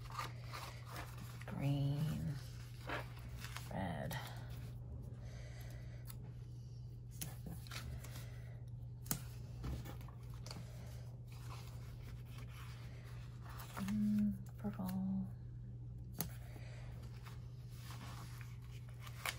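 Sticker paper rustles and crinkles close by.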